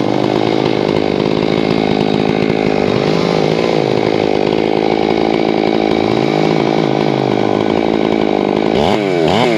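A chainsaw engine runs close by, its pitch rising and falling as it revs.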